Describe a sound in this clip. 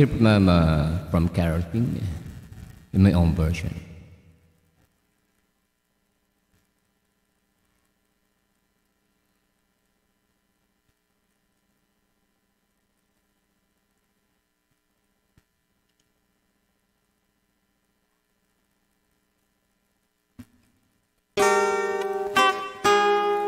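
A man sings closely into a microphone.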